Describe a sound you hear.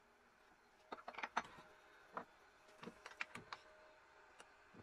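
Metal clanks as a tool rest is adjusted on a lathe.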